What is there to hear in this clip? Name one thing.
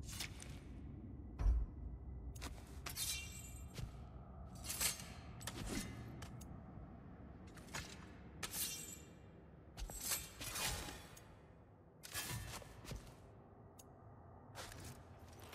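Short menu clicks and whooshes sound as selections change.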